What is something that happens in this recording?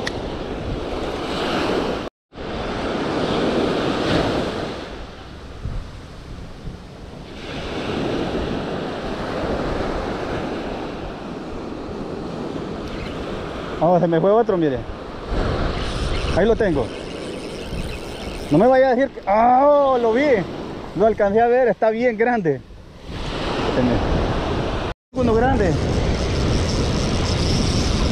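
Waves wash onto a beach and break nearby.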